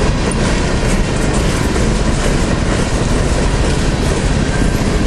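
A freight train rumbles and clatters along the tracks.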